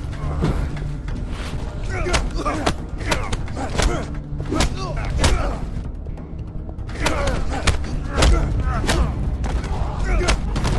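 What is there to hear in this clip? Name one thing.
Punches and blows land with sharp thuds.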